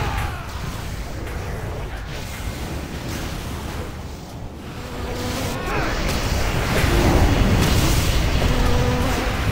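Magical spells crackle and whoosh in a battle.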